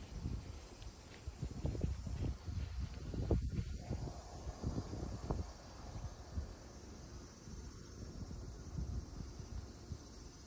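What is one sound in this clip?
Wind blows across an open space outdoors, buffeting the microphone.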